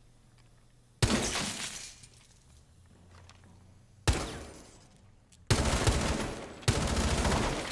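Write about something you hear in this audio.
Rifle shots crack loudly, each followed by a short echoing ring.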